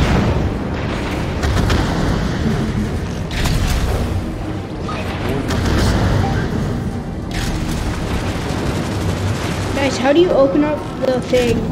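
A heavy machine rumbles and thuds with each lumbering step.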